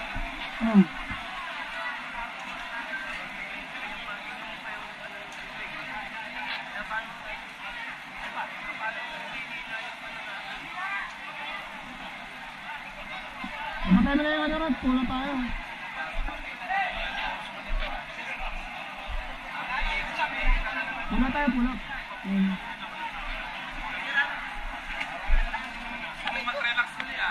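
A crowd of men talk and call out nearby, outdoors.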